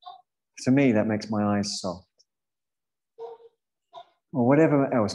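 A man speaks calmly and slowly into a microphone, as if on an online call.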